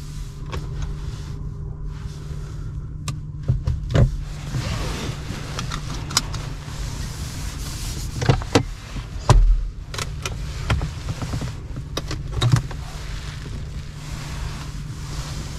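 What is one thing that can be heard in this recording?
Plastic clicks and taps as a hand handles the controls.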